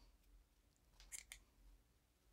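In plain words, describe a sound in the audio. Scissors snip through yarn with quick, soft clicks.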